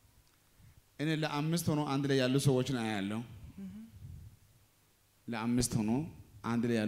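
A man speaks with animation into a microphone over a loudspeaker.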